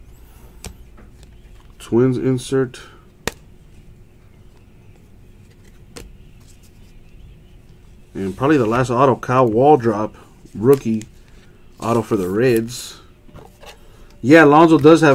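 Trading cards rustle and click softly as hands shuffle them.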